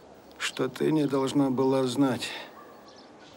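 An elderly man speaks weakly and slowly, close by.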